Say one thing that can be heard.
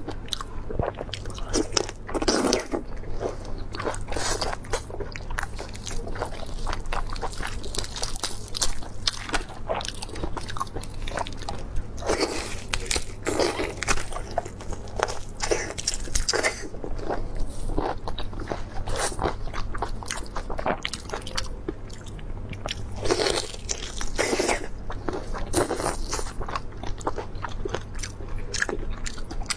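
Prawn shells crack and crunch close to a microphone.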